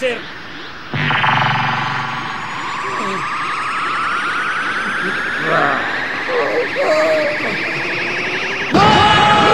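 A young man groans and strains, his voice slowly rising.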